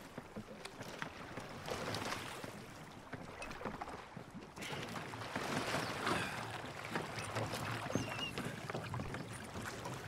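Wooden oars dip and splash in water as a rowboat is rowed.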